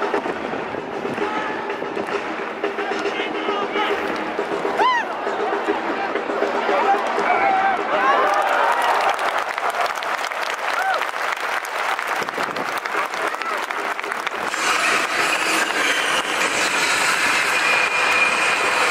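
A large crowd chants and cheers in an open stadium.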